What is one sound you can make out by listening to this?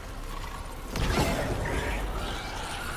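A gun fires with a heavy blast.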